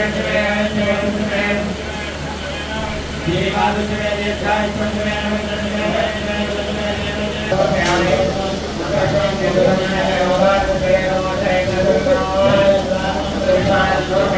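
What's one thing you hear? Men chant together in a steady, rhythmic drone.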